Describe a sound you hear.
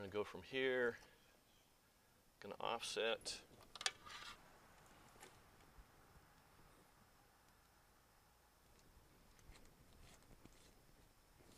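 Metal conduit clicks and rattles as it is handled.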